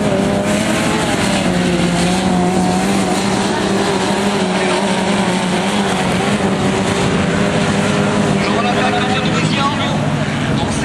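Racing buggy engines roar and rev loudly nearby.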